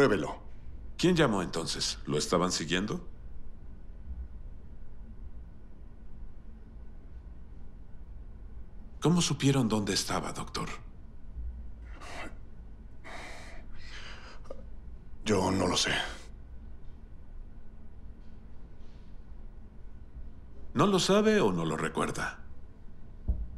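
A third man speaks calmly and smoothly.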